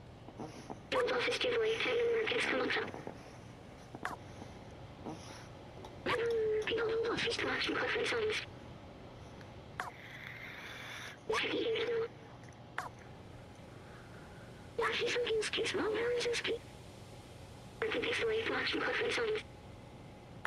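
A small robot chirps in bursts of warbling electronic babble.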